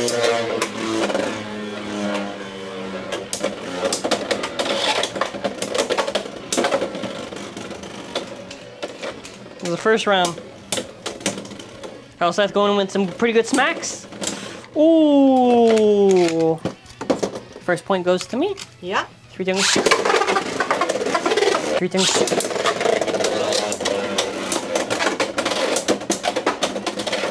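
Metal spinning tops whir and clash sharply against each other.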